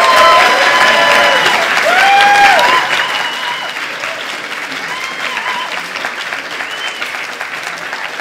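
A crowd laughs.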